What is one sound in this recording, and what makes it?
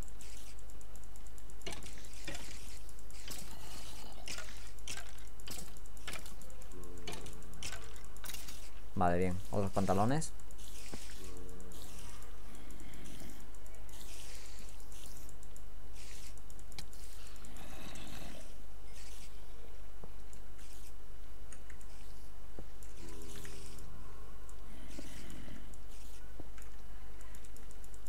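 A sword strikes monsters with quick, dull hits.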